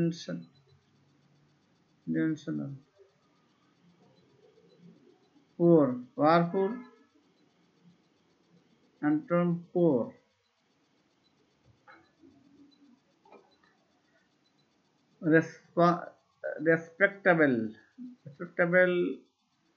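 A middle-aged man speaks slowly and calmly into a close microphone, with long pauses.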